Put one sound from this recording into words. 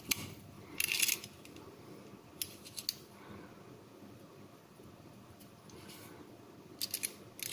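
A small metal tool clicks as it is folded and opened.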